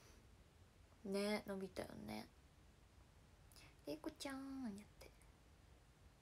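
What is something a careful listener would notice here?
A young woman speaks calmly, close to the microphone, in short phrases.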